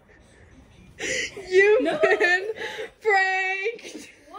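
A young woman shrieks and laughs loudly close by.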